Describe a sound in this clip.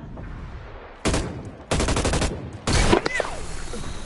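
A rifle fires short rapid bursts.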